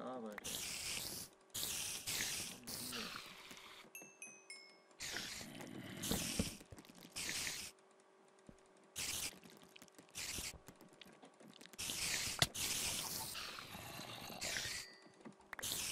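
A sword strikes a spider with dull thuds.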